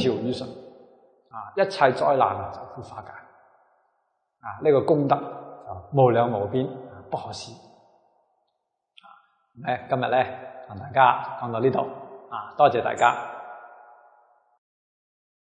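A middle-aged man speaks calmly and warmly into a microphone, close by.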